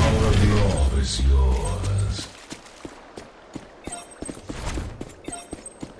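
A gun fires in quick repeated shots.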